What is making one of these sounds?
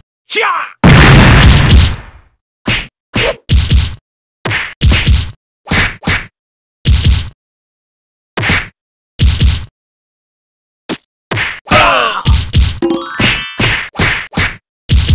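Punches and kicks land with sharp thuds in a game fight.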